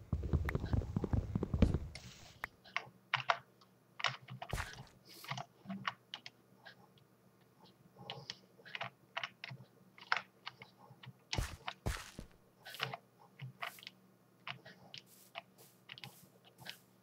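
Blocks are broken and placed with short, soft thuds and crunches, over and over.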